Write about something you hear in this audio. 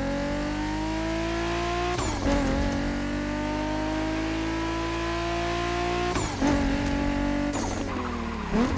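A sports car engine revs high and climbs in pitch as it accelerates.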